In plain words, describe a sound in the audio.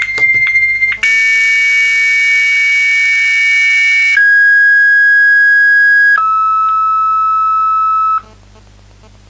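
A mobile phone sounds a loud, steady electronic tone that drops in pitch in steps.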